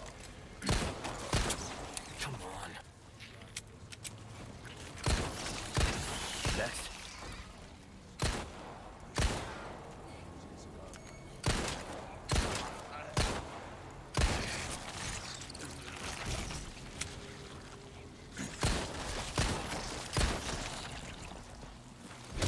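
A creature snarls and groans close by.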